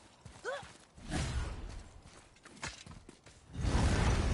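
A heavy stone mechanism grinds as it is pushed.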